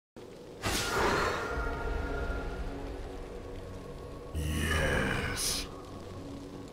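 Magic spells burst and whoosh loudly.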